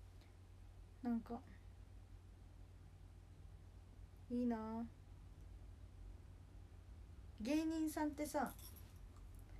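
A young woman speaks softly in short bursts close by.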